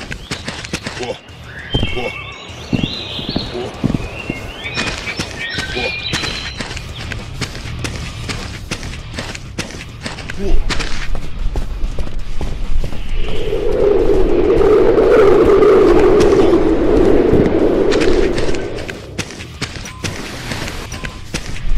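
Footsteps crunch over dry leaves.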